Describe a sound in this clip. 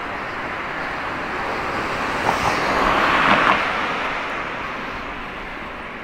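A car drives past nearby, growing louder and then fading.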